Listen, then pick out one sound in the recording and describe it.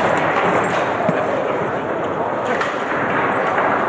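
Foosball rods clack as a ball knocks against the table's players and walls.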